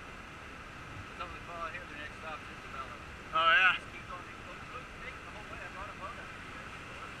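A young man talks excitedly nearby.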